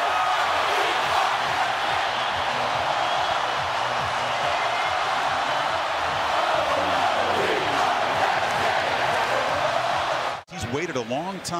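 A huge stadium crowd cheers and roars loudly.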